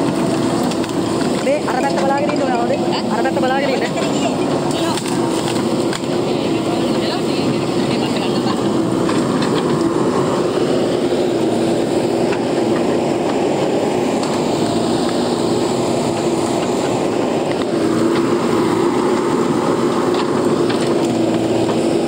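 Branches crack and snap as brush is pushed over.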